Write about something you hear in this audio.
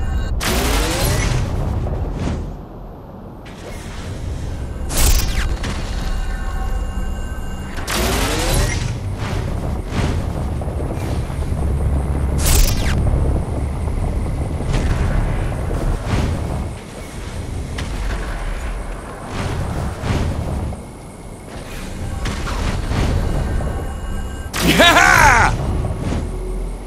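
Rising whooshing swooshes sound as a figure leaps high into the air.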